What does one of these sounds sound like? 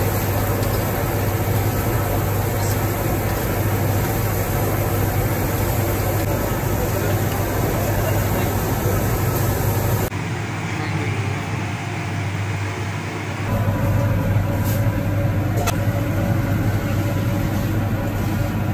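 Oil sizzles and bubbles steadily as food fries in a pan.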